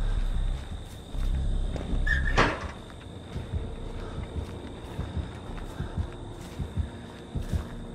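Footsteps run through dry grass.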